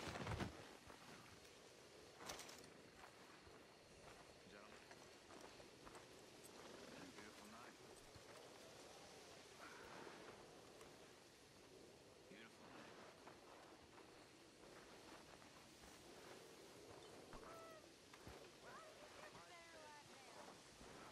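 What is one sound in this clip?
Footsteps crunch on dirt and grass.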